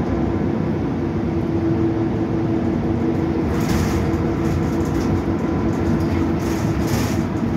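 A bus rattles and creaks as it moves.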